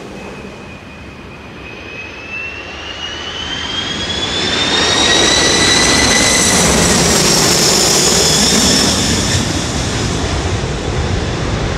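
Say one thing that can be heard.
A jet plane roars low overhead with a loud, high whine.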